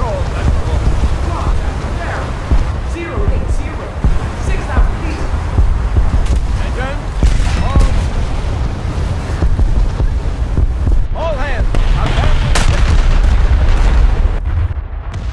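Ship guns boom and shells explode in a game battle.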